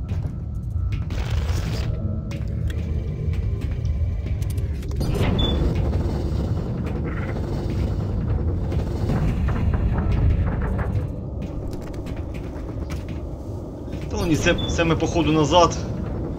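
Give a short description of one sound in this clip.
A deep mechanical hum drones steadily throughout.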